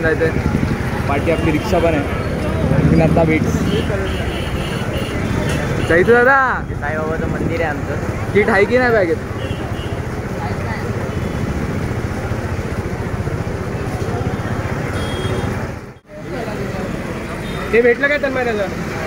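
Music blares from loudspeakers.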